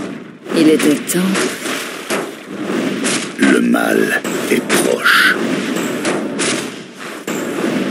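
Magic spells burst with a crackle.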